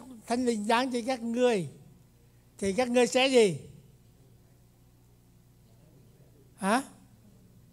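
An elderly man speaks with animation into a microphone, in an echoing hall.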